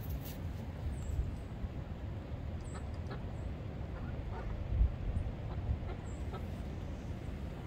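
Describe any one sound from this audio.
Ducks quack softly now and then.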